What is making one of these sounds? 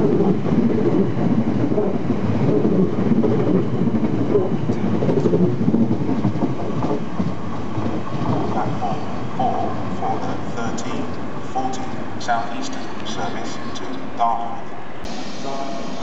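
A train rumbles and clatters as it pulls away along the tracks.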